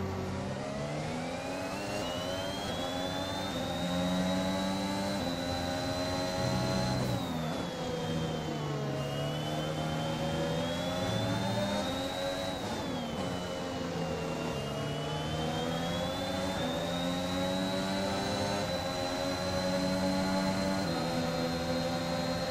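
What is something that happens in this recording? A Formula One car engine screams at high revs.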